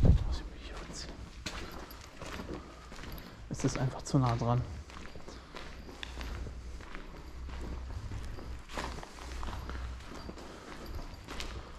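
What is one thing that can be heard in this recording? Footsteps crunch slowly on gritty debris in an echoing empty room.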